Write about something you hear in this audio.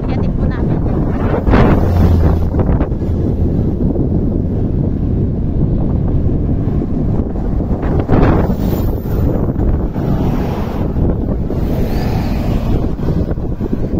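A bus rushes past close by.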